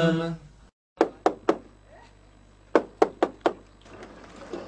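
A man knocks sharply on a wooden door.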